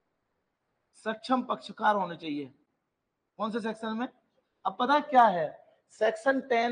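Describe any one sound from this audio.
A man speaks calmly through a microphone, explaining.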